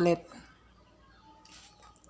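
A plug clicks into a socket.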